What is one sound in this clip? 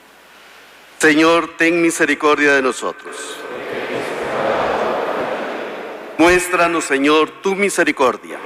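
A man sings through a microphone in a large echoing hall.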